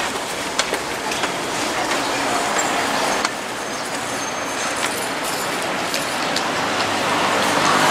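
Street traffic hums outdoors.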